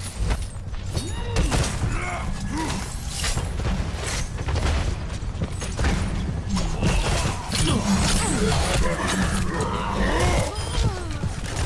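Explosions boom and echo.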